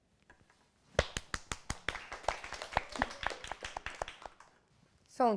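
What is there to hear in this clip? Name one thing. A woman claps her hands quickly.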